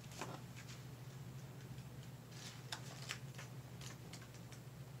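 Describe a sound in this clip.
Paper cards rustle and tap softly close by.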